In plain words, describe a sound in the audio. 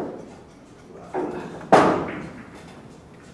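Pool balls knock together and roll across the table.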